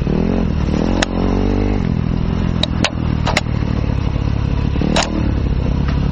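Stones and branches knock against the dirt bike.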